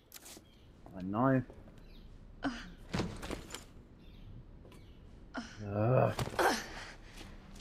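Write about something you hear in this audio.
A young woman groans and gasps with effort.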